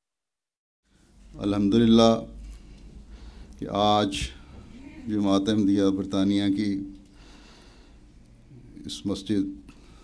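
An elderly man speaks slowly and calmly through a microphone.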